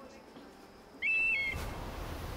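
An eagle screeches.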